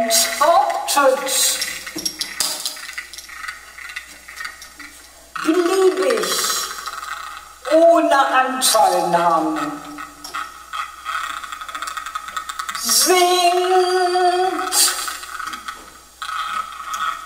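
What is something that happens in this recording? A man sings into a microphone in long, sliding notes.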